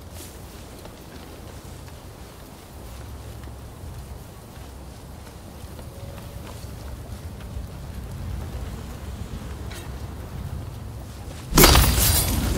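Footsteps rustle softly through tall grass.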